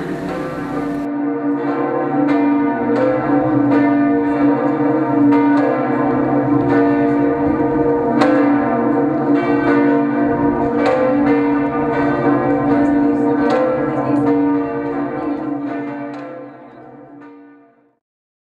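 Church bells ring loudly, with strokes overlapping and slowly fading at the end.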